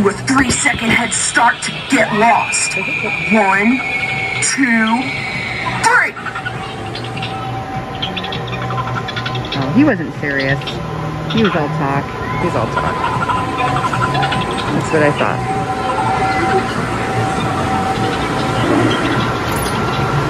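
An animatronic clown laughs and talks in a distorted voice through a small loudspeaker.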